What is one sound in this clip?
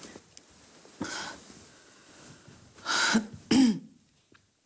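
A young woman speaks quietly and anxiously into a phone close by.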